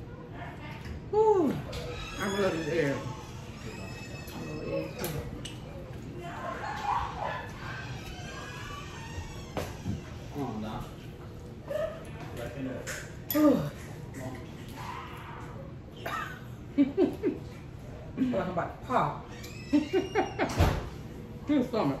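A second young woman talks and laughs close to a microphone.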